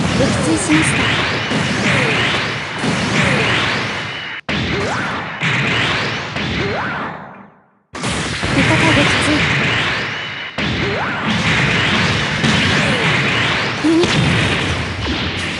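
Rocket thrusters roar as a giant robot boosts along.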